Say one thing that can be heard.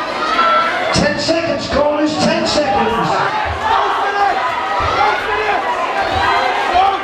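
Boxing gloves thud against a boxer's body.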